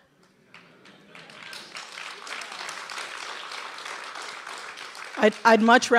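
An audience applauds in a large hall, the clapping swelling.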